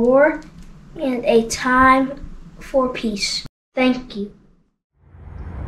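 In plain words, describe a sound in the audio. A boy reads aloud close to the microphone.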